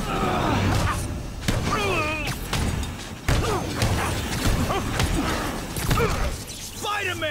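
Blasts and impacts thud during a fight.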